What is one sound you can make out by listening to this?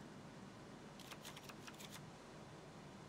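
Short clicks sound as cards are drawn.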